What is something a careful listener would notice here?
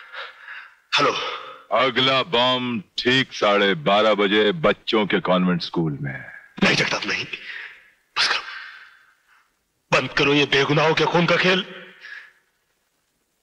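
A man shouts angrily into a phone.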